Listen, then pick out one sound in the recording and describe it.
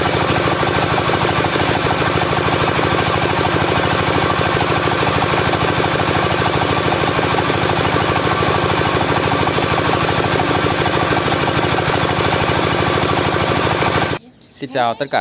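A machine motor drones loudly and steadily.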